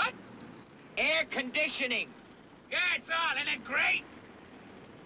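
A young man speaks, close by.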